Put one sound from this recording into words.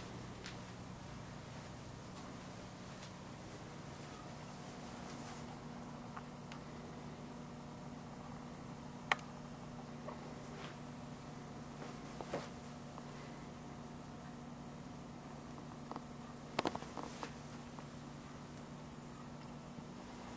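A pinball machine hums steadily.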